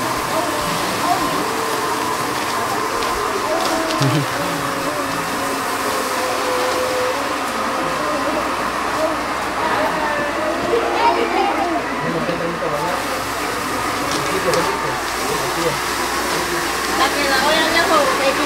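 Music plays loudly through a loudspeaker.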